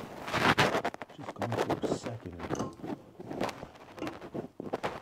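Metal pliers click and scrape against a pipe fitting.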